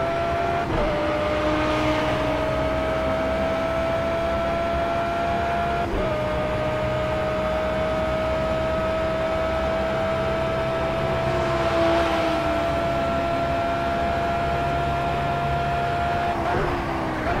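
A racing car engine roars at high revs, climbing in pitch through the gears.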